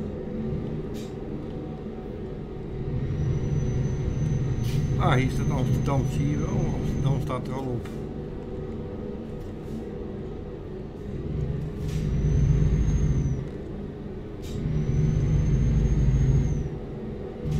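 A truck engine hums steadily and swells as it pulls harder.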